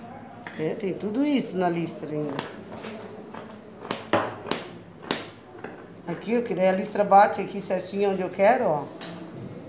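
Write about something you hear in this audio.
Scissors snip through fabric.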